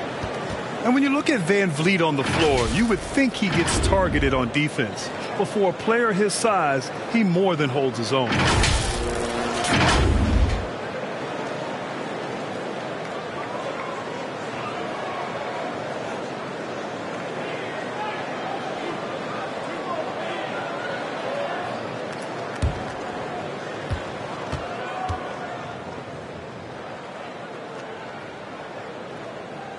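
A crowd murmurs steadily in a large arena.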